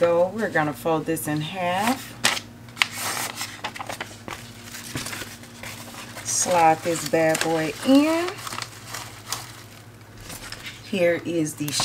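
Paper rustles and crinkles in handling.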